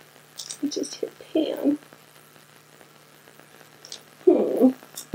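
A middle-aged woman speaks calmly and closely into a microphone.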